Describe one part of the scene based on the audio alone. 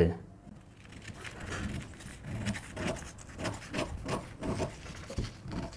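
Scissors snip through paper in quick cuts.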